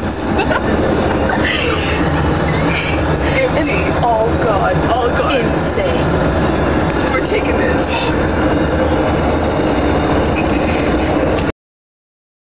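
Young women talk and laugh close by.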